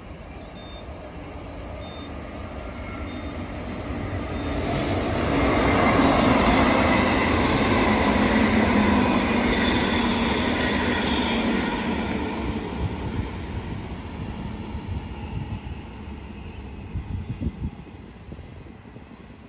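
A passenger train approaches and rushes past with a loud rumble and rattle of wheels on rails.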